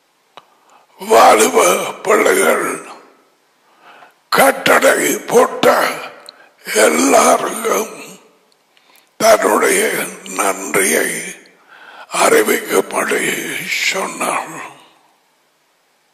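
An elderly man speaks with animation into a headset microphone, close by.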